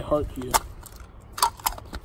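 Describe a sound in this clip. Small metal pieces rattle in a plastic case.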